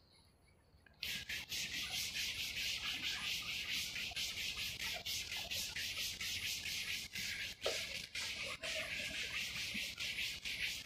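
A duster rubs rhythmically across a board.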